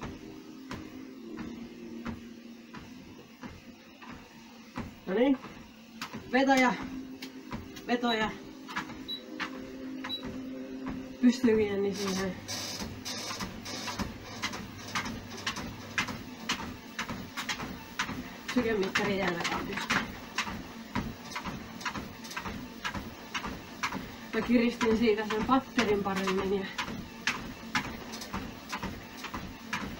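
Footsteps thud steadily on a treadmill belt.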